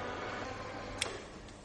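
A wall switch clicks.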